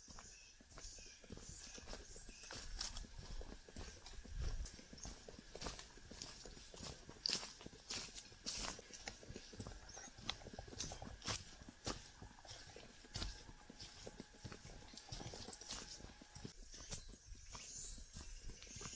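Footsteps crunch on a dry leafy forest path.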